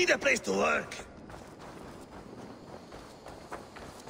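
Footsteps run over soft ground.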